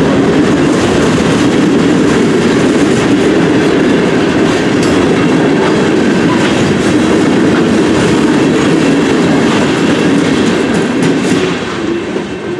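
Freight train cars rumble and clatter loudly past close by.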